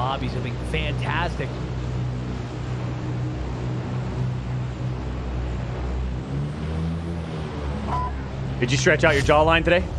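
A plane engine drones steadily.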